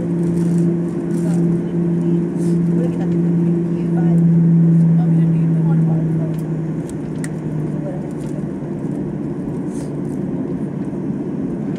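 A plane's engines hum steadily from inside the cabin.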